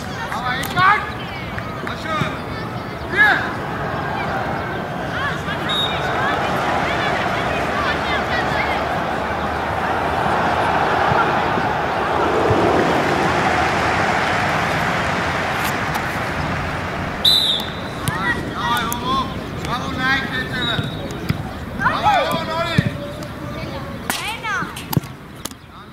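Young boys shout across an outdoor football pitch.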